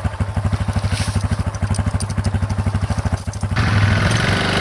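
A quad bike engine idles close by with a rapid chugging.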